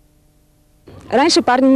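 A young man speaks loudly nearby.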